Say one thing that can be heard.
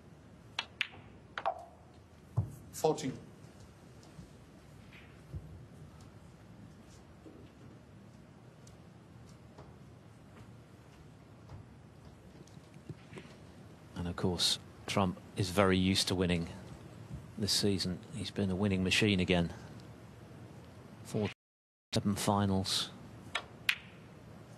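A cue strikes a snooker ball with a short, sharp click.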